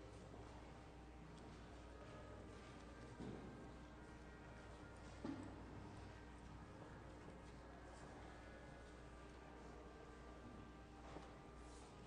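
A violin plays a melody in a large echoing hall.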